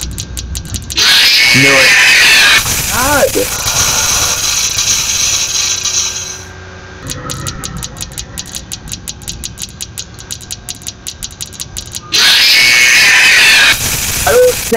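A harsh electronic screech blares suddenly and loudly.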